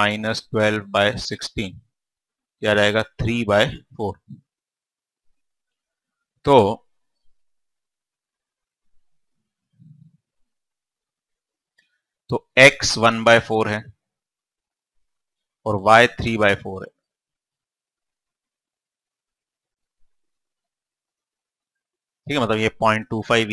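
A man speaks calmly into a clip-on microphone, in short bursts with pauses.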